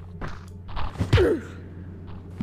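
A club strikes a man with a dull thud.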